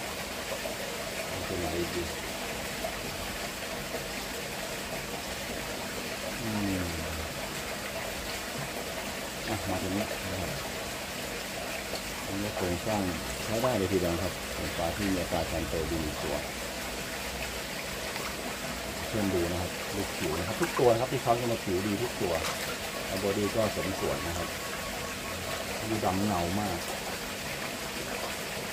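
A net swishes and splashes through water.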